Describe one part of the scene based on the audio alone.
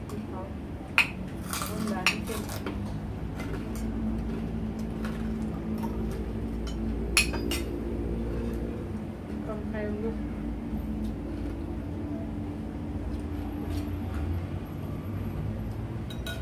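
Spoons clink against plates and bowls.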